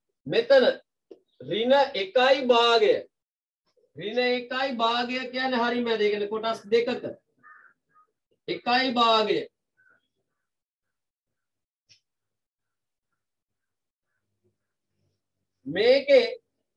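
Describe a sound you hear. A young man speaks calmly and clearly, as if explaining.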